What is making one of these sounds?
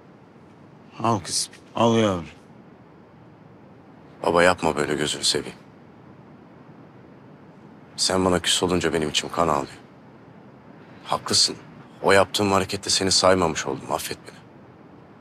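A middle-aged man speaks quietly and seriously, close by.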